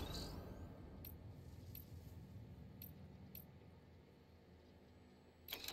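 Soft clicks sound as menu items are selected.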